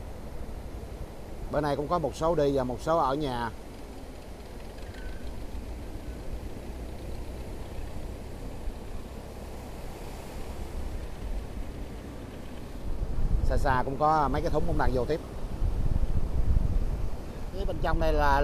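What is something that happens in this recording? Waves break and wash onto the shore.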